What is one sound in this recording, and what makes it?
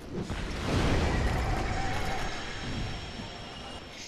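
A fireball bursts with a loud, rumbling roar.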